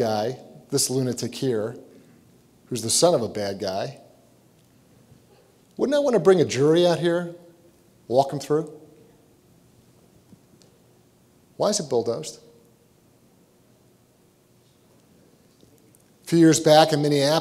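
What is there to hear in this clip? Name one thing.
A man speaks into a microphone, giving a talk with long pauses.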